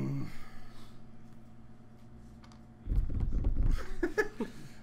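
Small plastic pieces are handled and knock lightly on a tabletop.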